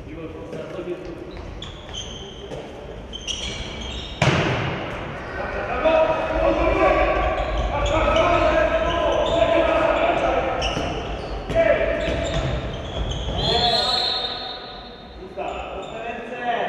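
Sneakers squeak on a wooden floor in an echoing hall.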